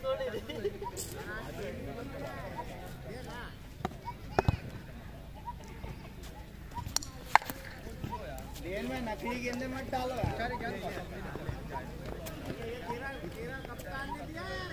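Young men call out and talk across an open field.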